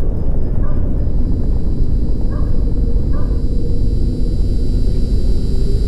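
A fluorescent tube flickers on and hums with a thin, steady whine.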